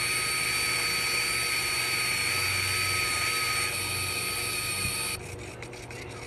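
An electric sander whines loudly, grinding against a hard surface.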